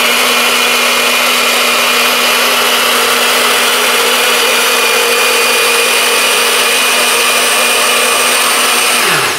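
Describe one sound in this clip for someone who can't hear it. A blender motor whirs loudly and steadily, then winds down.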